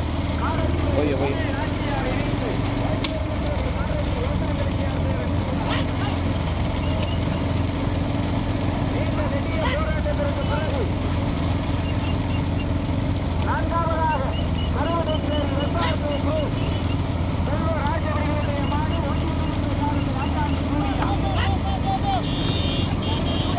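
Hooves clatter on a paved road.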